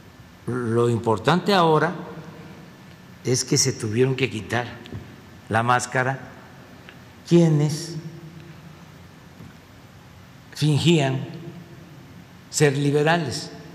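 An elderly man speaks calmly into a microphone in a large echoing room, with pauses between phrases.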